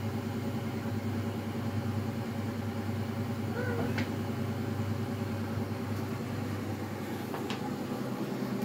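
A cat shifts about in a rustling fabric bag.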